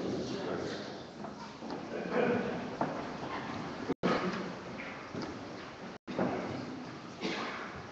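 A crowd of people shuffles and sits down on wooden benches in an echoing hall.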